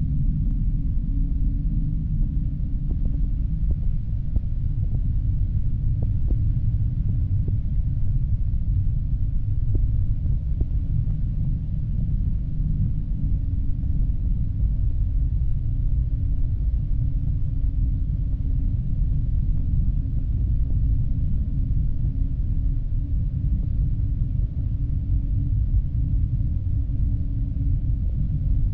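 Jet engines roar steadily and deeply from inside a plane's cabin.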